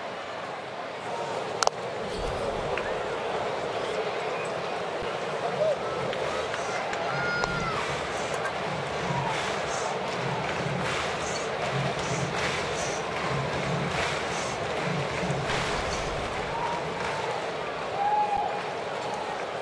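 A stadium crowd murmurs and cheers steadily in a large open space.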